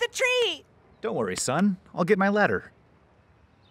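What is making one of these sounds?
A man speaks in a deep, lively voice.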